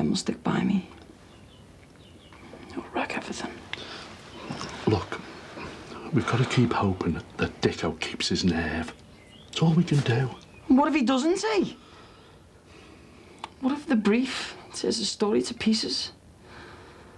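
A middle-aged man speaks firmly and with animation, close by.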